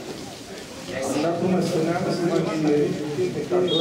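A crowd in the stands cheers louder.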